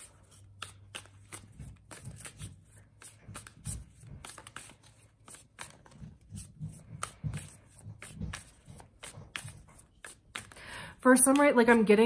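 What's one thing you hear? Cards shuffle with soft, rapid riffling and clicking.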